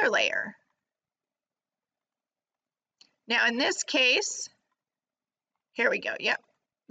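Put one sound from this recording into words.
A woman speaks calmly into a close microphone, in short bursts with pauses.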